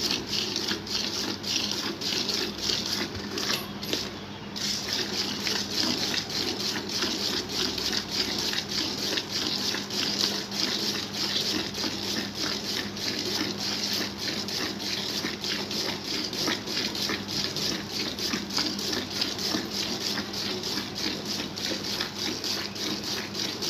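Jets of milk squirt rhythmically into a metal pail during hand milking.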